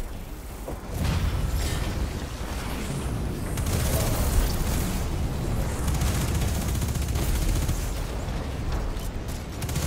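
Explosions boom with a deep rumble.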